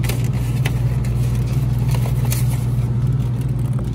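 A plastic egg carton rustles and clicks as it is picked up.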